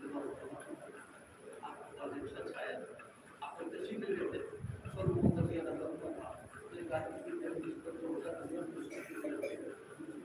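An elderly man speaks calmly and steadily nearby.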